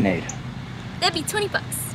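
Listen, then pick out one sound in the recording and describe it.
A young woman speaks briefly and cheerfully nearby.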